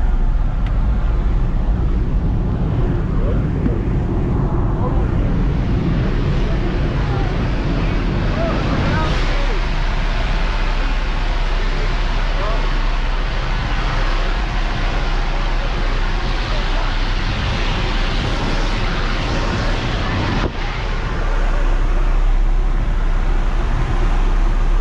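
An aircraft engine drones loudly and steadily.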